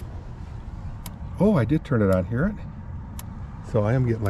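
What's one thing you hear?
An electric fence energizer ticks with sharp, regular clicks.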